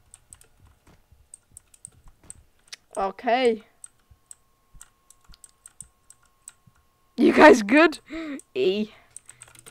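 Keyboard keys click and clatter under quick typing.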